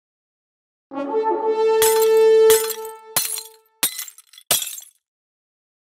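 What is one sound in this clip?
A cheerful electronic jingle plays.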